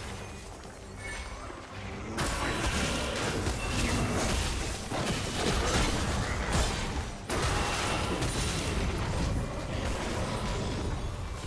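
Fantasy battle sound effects whoosh and clash.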